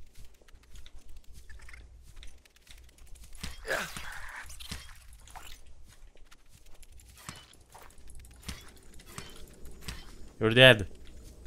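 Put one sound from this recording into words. A knife slashes through plants with quick swishing strokes.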